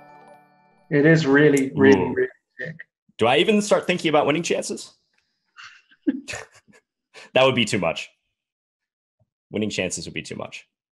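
A second man talks and laughs through a microphone.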